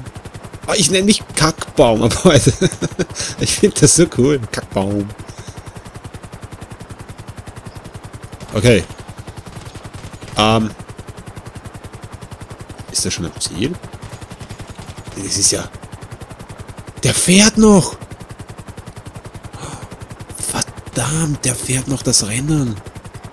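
A helicopter's rotor thuds steadily and rapidly.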